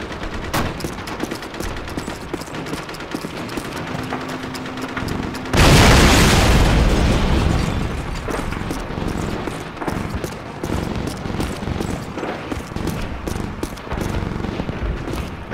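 Footsteps crunch steadily over rubble and gravel.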